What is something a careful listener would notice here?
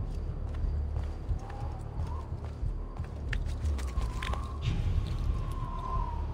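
Hands grab at stone with soft scuffs and knocks while climbing.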